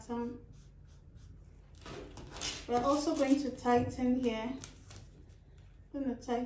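A marker scratches softly across paper.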